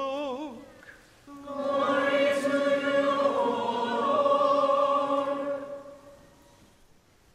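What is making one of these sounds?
An elderly man chants in a sung voice through a microphone in a reverberant hall.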